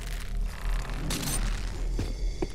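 A woman lands on stone with a thud.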